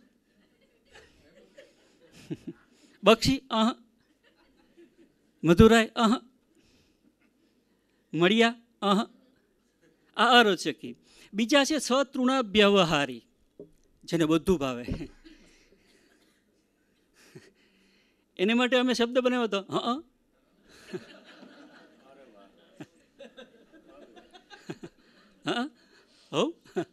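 A middle-aged man laughs into a microphone.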